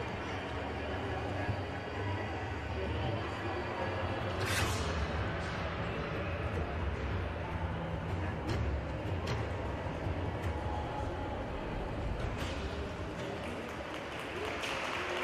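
A man speaks to a group in a large echoing hall.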